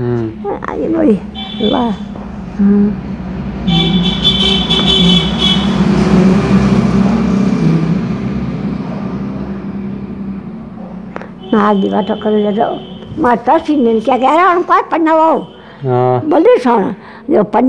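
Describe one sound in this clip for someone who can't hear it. An elderly woman speaks close by, her voice wavering.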